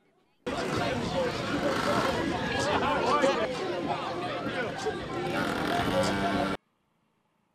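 A crowd shouts and cheers outdoors.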